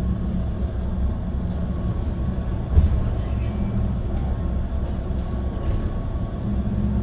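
Wind buffets outdoors with a low, steady rumble.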